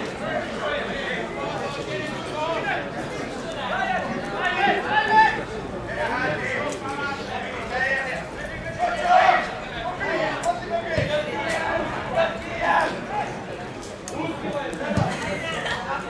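Men shout to each other from a distance outdoors.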